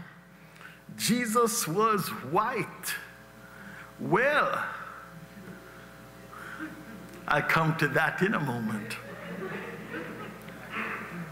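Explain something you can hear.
An elderly man preaches with animation into a microphone.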